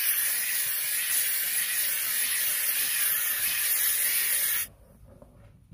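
A steam cleaner hisses loudly.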